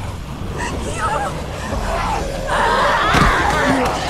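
A young woman speaks in a strained, pained voice.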